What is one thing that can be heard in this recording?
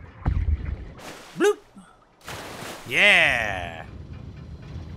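A man speaks loudly and with animation into a nearby microphone.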